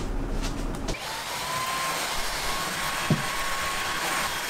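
A cordless vacuum cleaner whirs steadily.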